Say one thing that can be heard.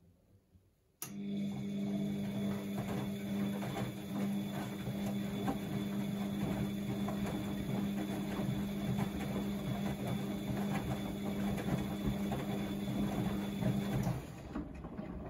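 Laundry tumbles and thumps inside a spinning washing machine drum.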